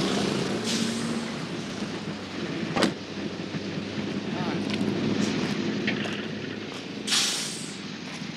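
Steam hisses steadily from an overheated car engine.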